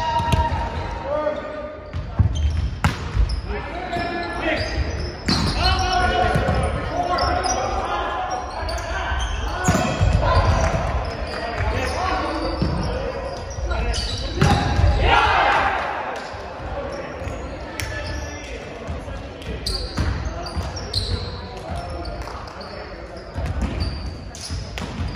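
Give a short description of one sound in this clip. Young men shout and call out to each other across an echoing gym.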